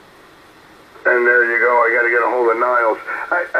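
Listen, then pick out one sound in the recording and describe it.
A man talks through a radio's small loudspeaker, with a thin, tinny sound.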